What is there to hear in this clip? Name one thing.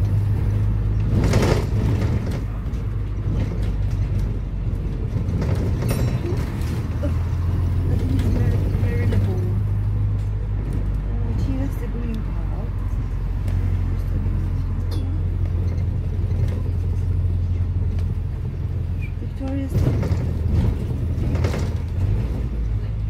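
Cars pass by on the road.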